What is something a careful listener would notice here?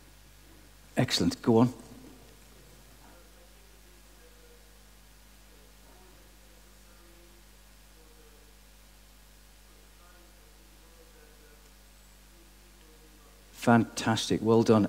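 A man speaks into a microphone over loudspeakers in a large echoing hall, with long pauses.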